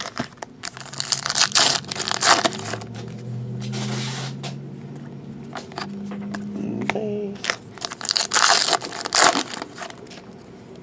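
A plastic wrapper crinkles and rustles close by.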